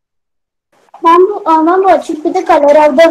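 A young woman speaks loudly and animatedly over an online call.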